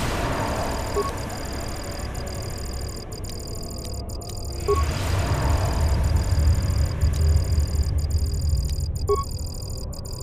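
A terminal beeps briefly as options are chosen.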